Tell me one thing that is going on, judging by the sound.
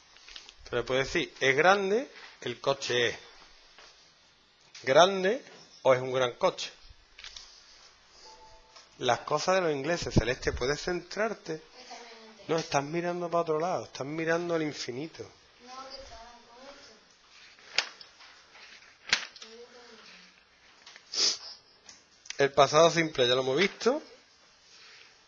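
A man speaks calmly and clearly through a close microphone, pausing between phrases.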